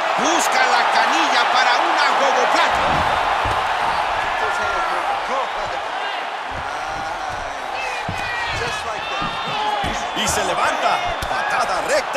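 Punches and kicks thud against a body.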